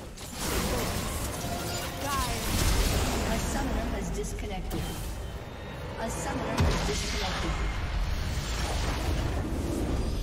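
Game battle effects crash, zap and clash loudly.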